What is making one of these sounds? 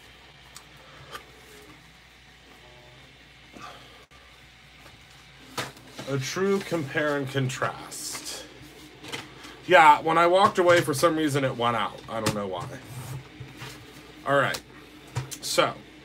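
Paper slides and rustles across a hard surface.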